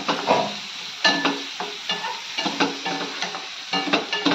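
A wooden spatula scrapes and taps against a metal pan.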